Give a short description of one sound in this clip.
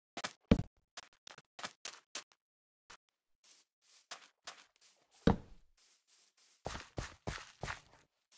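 Footsteps crunch quickly over sand and grass.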